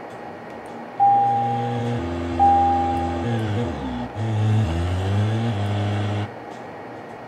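A car engine revs and roars.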